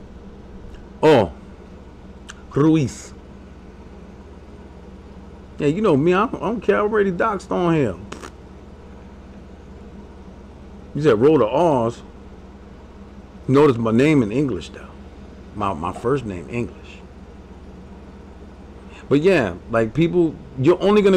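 A man speaks casually into a close microphone, in short bursts with pauses.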